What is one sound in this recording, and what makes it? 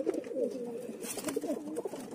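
A pigeon flaps its wings.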